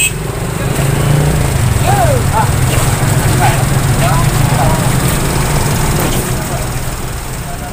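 A crowd of men talks and calls out outdoors.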